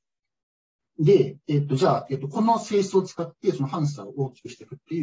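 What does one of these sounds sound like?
A man speaks calmly through a microphone, as if in an online call.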